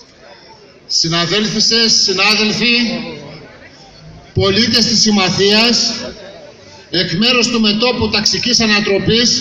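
A middle-aged man speaks loudly through a microphone and loudspeaker outdoors.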